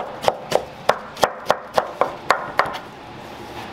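A knife chops quickly against a wooden board.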